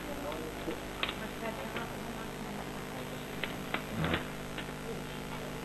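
Papers rustle and small objects knock on a table.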